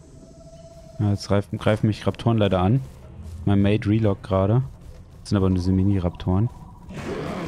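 A large creature gives a series of loud, low, groaning calls.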